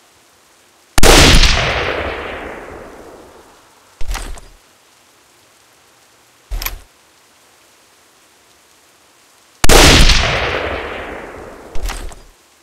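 A bolt-action rifle fires, the shot echoing and rolling away outdoors.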